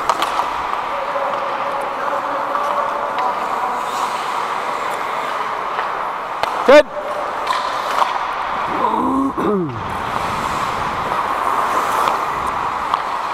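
Hockey sticks click against a puck and the ice.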